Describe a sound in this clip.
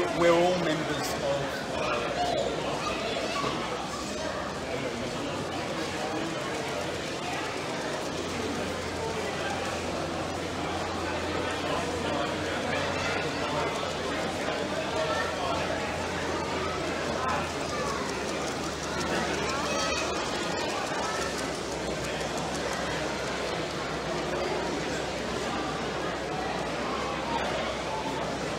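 A crowd of people chatters in a large hall.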